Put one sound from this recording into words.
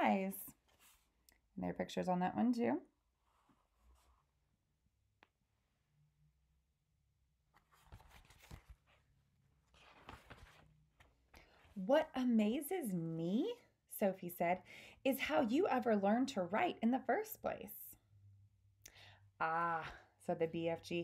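A woman speaks close by with animation, as if to a listener.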